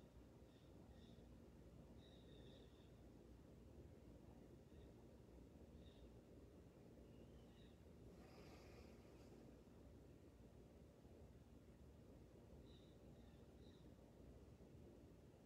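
A ceiling fan whirs steadily.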